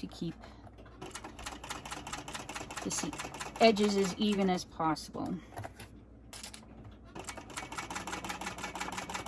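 A sewing machine stitches with a fast, rapid rattle.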